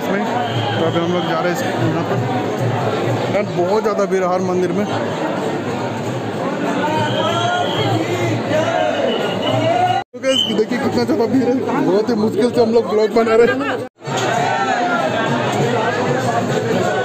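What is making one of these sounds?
A dense crowd of men and women chatters loudly all around, close by.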